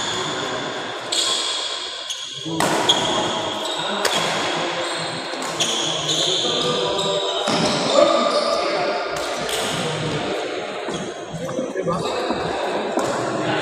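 Men call out to each other during play in an echoing hall.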